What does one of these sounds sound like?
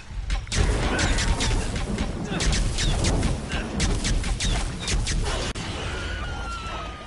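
Electricity crackles and snaps in sharp bursts.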